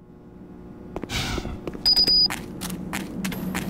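Footsteps scuff on hard ground.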